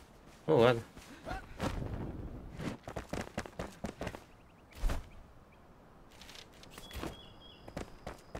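Footsteps patter quickly over stone.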